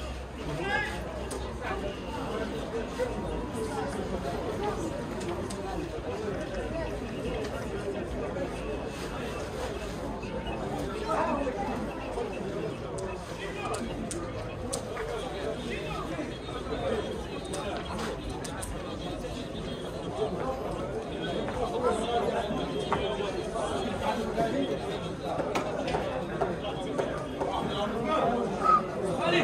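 Several men chatter casually nearby outdoors.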